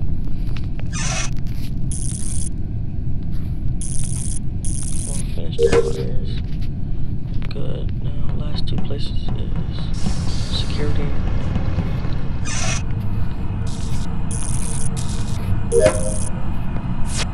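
Short electronic blips sound in quick bursts.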